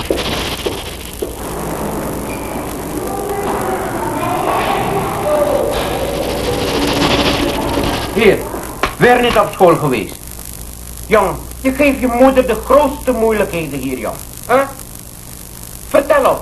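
A boy speaks quietly and haltingly, close by.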